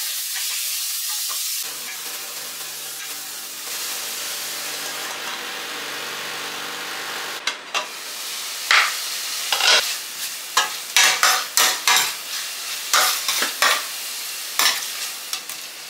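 A metal spoon scrapes against a pan.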